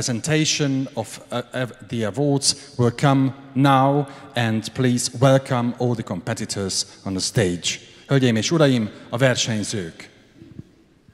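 A woman speaks into a microphone, announcing in a large echoing hall.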